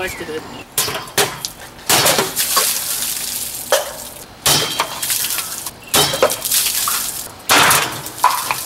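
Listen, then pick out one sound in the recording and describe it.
A blade slices through cans with sharp bursts.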